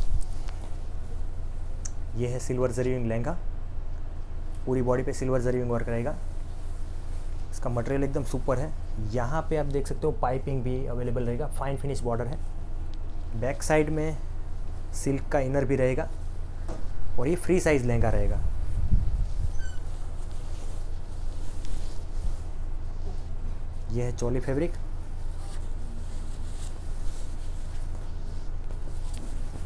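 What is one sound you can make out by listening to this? Fabric rustles as a man handles cloth.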